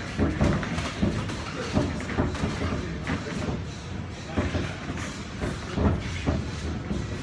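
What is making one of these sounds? Sneakers squeak and shuffle on a canvas floor.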